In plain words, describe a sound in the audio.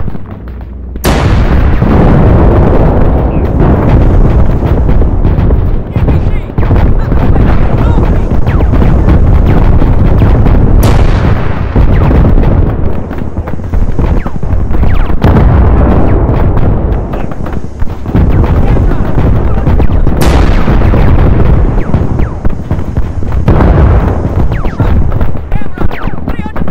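Explosions boom and rumble loudly.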